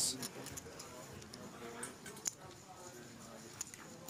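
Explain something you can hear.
Poker chips click softly as a player handles them.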